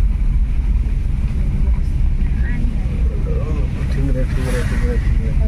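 A car engine rumbles steadily from inside as the car drives along a wet road.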